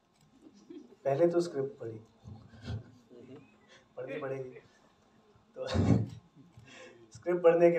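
A young man talks into a microphone and laughs.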